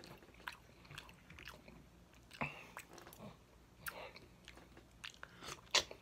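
Food squelches as fingers tear at it.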